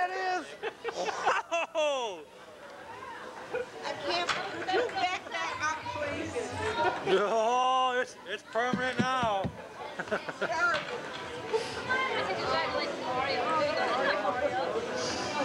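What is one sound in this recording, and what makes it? Several adults chat and laugh together outdoors.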